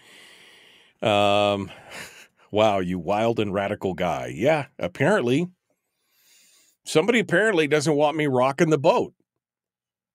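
An older man speaks with animation, close to a microphone.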